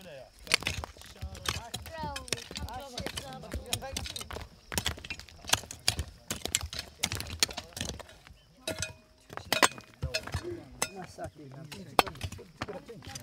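Hoes and shovels strike stony soil with dull thuds.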